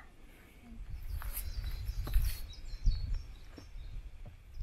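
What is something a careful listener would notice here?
Footsteps tread on a rocky dirt trail.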